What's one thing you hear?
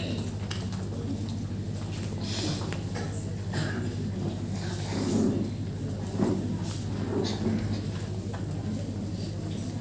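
Feet shuffle and tap on a floor.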